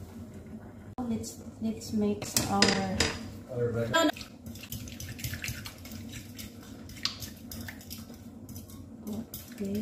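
A fork beats and scrapes against a glass bowl.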